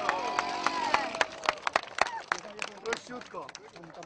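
A crowd claps outdoors.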